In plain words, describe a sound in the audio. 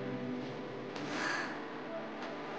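A young woman laughs softly close by.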